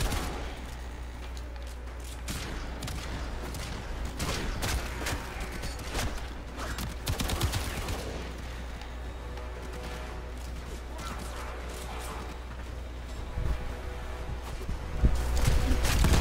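A blade swishes and clangs in quick strikes.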